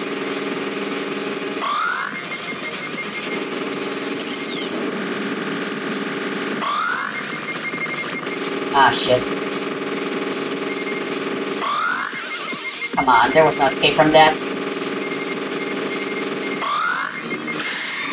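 Rapid shooting sound effects patter continuously.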